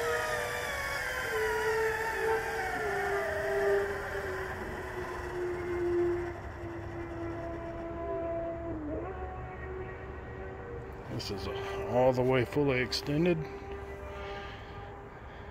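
An electric motor whines steadily, slowly dropping in pitch.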